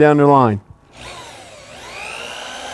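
A power drill whirs and changes speed.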